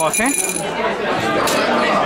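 Ice rattles in a metal cocktail shaker.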